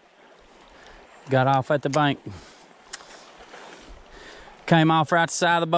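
A shallow stream trickles softly over stones.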